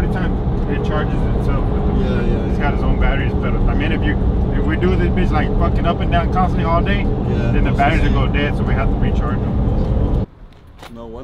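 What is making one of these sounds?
Tyres and an engine rumble steadily inside a moving car.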